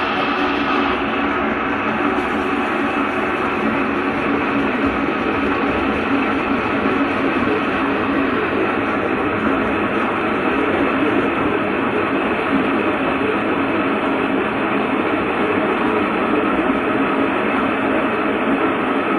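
A mixing machine hums steadily as its paddles churn thick paste.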